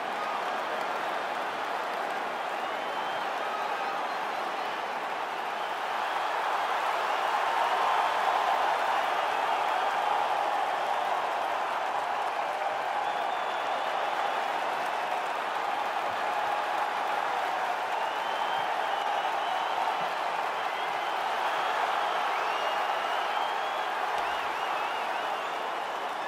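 A large crowd roars and cheers steadily in a big arena.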